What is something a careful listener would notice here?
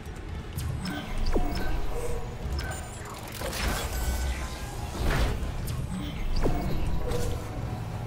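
Heavy metal boots clank on a metal floor.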